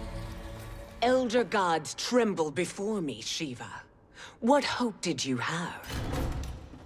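A woman speaks in a deep, menacing voice, close by.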